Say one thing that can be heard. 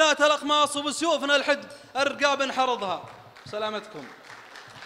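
A man chants verse loudly through a microphone in an echoing hall.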